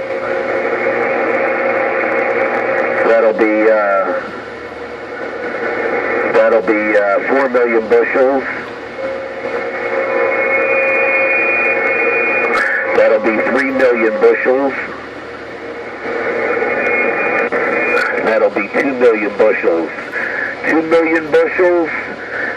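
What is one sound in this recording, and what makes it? A radio hisses and crackles with steady static.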